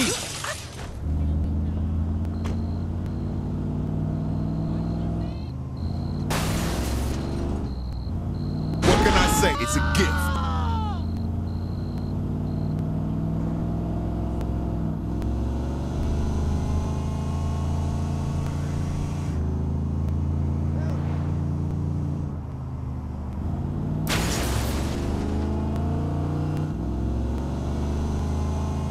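A truck engine hums and revs steadily as it drives.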